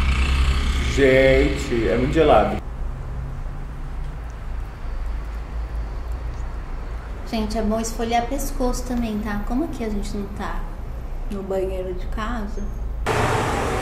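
A young woman talks casually up close.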